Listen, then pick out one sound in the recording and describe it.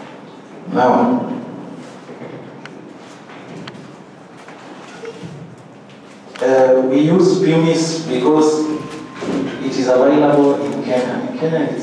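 A man speaks with animation into a microphone, heard through a loudspeaker in a room.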